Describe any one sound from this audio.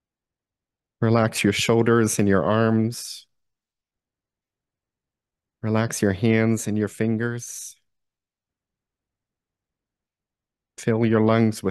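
A man speaks calmly and clearly through a microphone, in short phrases with pauses.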